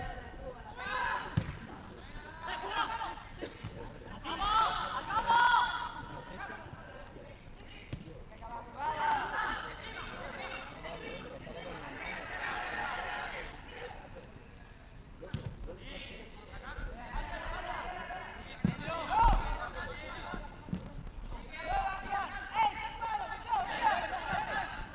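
Football players shout to each other from a distance.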